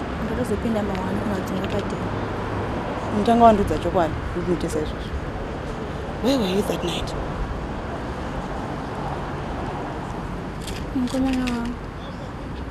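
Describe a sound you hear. A young woman speaks quietly and hesitantly nearby.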